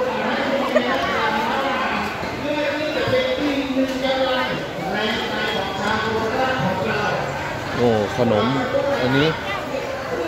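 Several women chat and call out nearby.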